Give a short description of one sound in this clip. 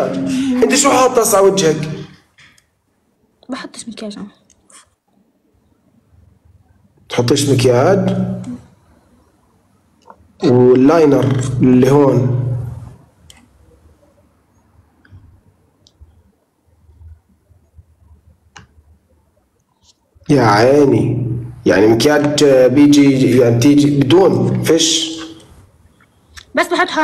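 A young man speaks casually over an online call.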